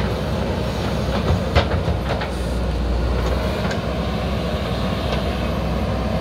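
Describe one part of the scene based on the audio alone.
Soil and clods thump and scrape as a digger bucket moves earth.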